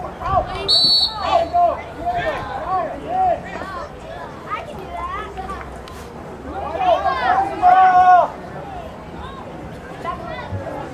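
A crowd of spectators shouts and cheers from the sidelines outdoors.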